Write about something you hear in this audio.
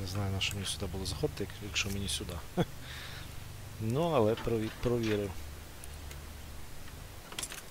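Metal picks click and scrape inside a door lock.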